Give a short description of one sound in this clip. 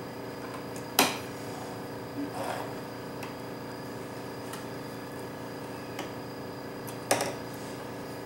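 A sewing machine clicks sharply.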